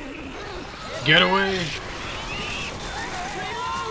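A monster snarls and shrieks close by.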